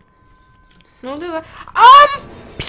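A young woman screams loudly into a microphone.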